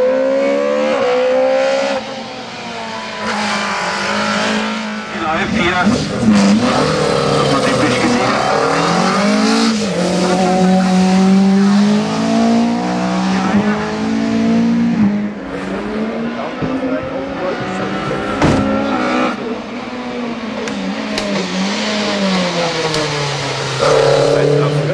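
A racing car engine roars loudly, revving up and down through the gears.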